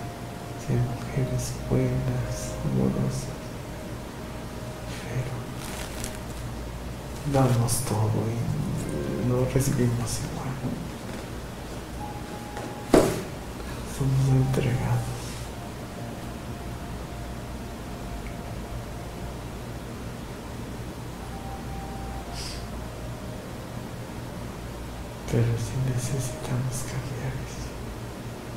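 A man lying close by speaks slowly and quietly in short bursts.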